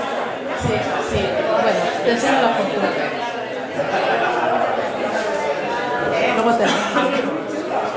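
A woman speaks into a microphone over loudspeakers in a room that echoes a little.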